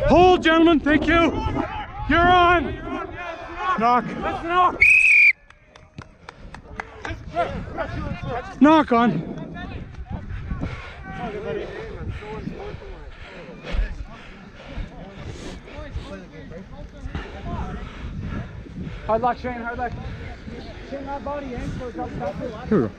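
Young men shout loudly to each other outdoors.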